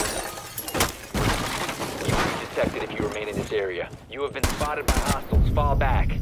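A gun fires several sharp shots.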